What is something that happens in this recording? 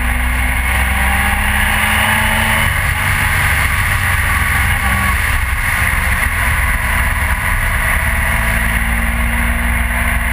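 A motorcycle engine hums steadily as it rides along a road.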